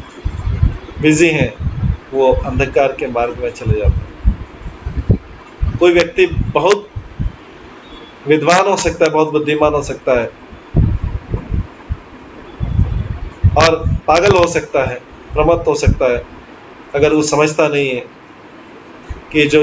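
A middle-aged man speaks calmly, in short phrases with pauses, heard through a microphone on an online call.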